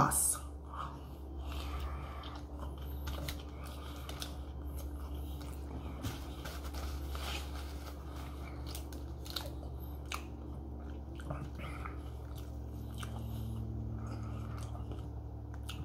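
A man chews food with his mouth full.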